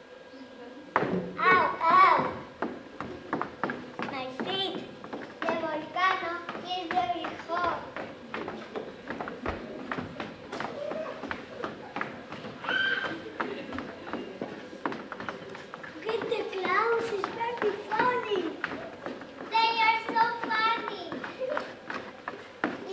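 Young children speak lines with animation in a hall with some echo.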